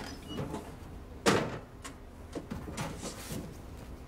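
A box lid knocks as it is lifted off.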